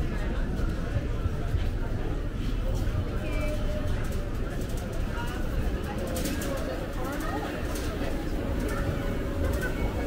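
Shopping cart wheels rattle along a hard floor.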